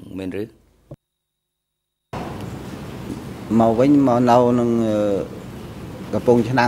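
A man speaks calmly into a microphone, in measured phrases with pauses.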